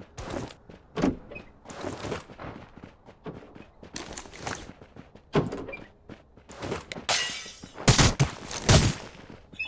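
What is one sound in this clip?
A wooden door bangs shut.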